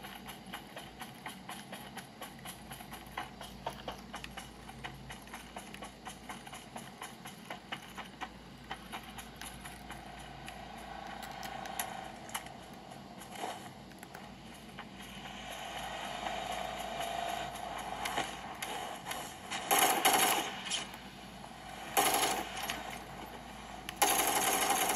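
Gunshots crack in quick bursts from a small device speaker.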